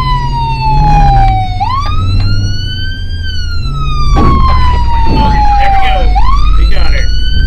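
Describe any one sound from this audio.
A police siren wails, rising and falling in pitch.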